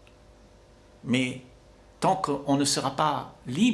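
An elderly man speaks calmly into a microphone close by.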